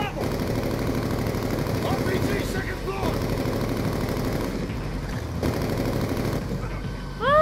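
A heavy machine gun fires in rapid bursts.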